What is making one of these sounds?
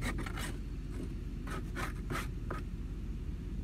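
Wooden hive boxes knock and scrape.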